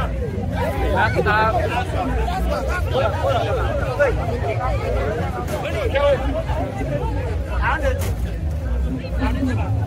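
A large crowd chatters and shouts excitedly close by, outdoors.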